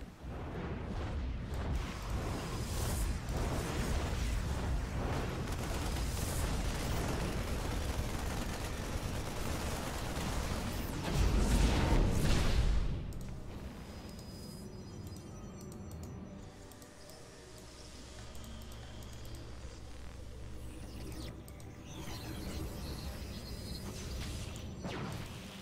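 A man commentates with animation through a close microphone.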